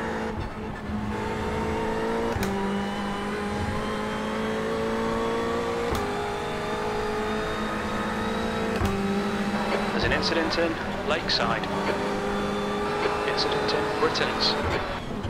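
A racing car engine drones steadily, rising in pitch and dropping sharply at each gear change.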